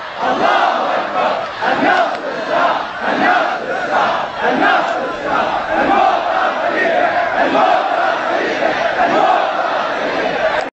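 A large crowd of men chants loudly outdoors.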